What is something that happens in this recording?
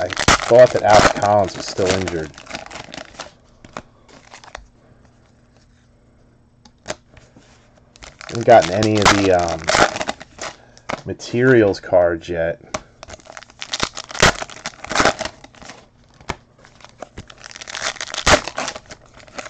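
Foil wrappers crinkle and rip as packs are torn open.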